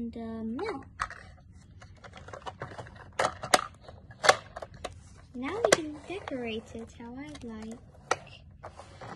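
Small plastic toy parts click and clack as they are handled.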